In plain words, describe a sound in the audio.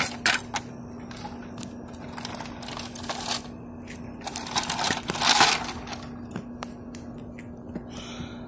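Plastic toy wheels scrape and rattle over rough concrete.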